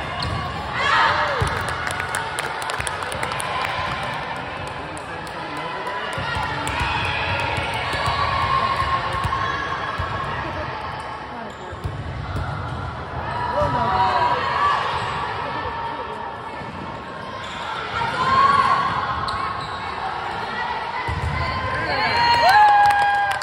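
A volleyball thuds off players' arms and hands.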